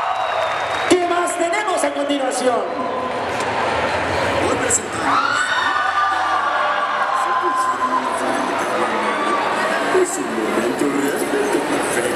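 A man sings loudly through a loudspeaker in a large echoing hall.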